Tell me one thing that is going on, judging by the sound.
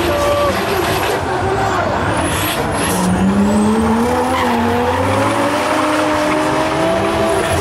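Car engines roar and rev loudly as cars drift.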